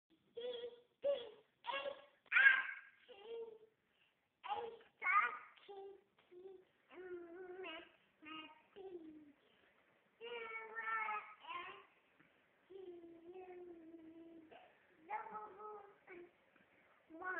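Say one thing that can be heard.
A toddler talks and sings in a high voice close by.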